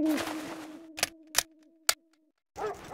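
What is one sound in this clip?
A revolver fires several sharp shots.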